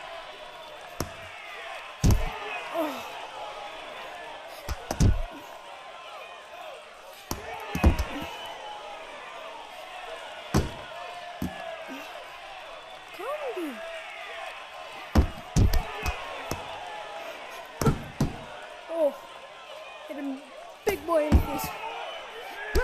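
Boxing gloves land heavy punches with dull thuds.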